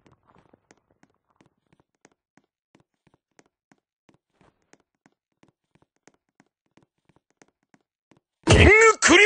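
Soft footsteps patter steadily.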